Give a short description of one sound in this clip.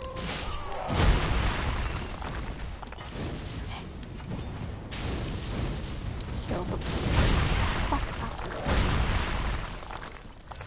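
Heavy blows crash and rumble.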